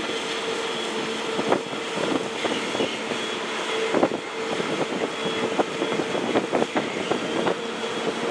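Propeller wash churns and rushes in the sea.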